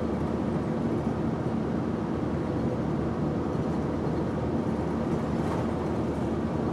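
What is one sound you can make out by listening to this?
A vehicle engine hums steadily.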